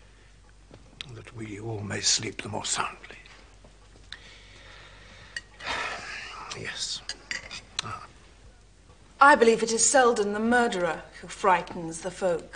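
An elderly man speaks calmly and close by.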